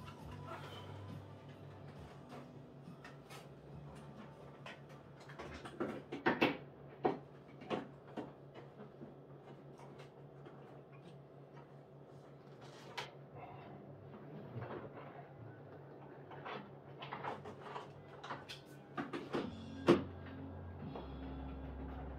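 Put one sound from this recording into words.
Things knock and clatter inside a cabinet.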